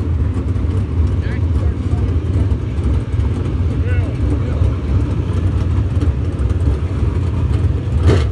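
Tyres churn through loose dirt.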